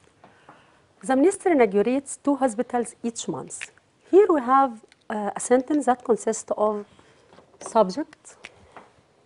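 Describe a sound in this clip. A woman speaks clearly and calmly, like a teacher explaining, close to a microphone.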